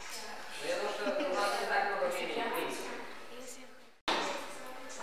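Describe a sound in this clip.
A young woman speaks playfully close by.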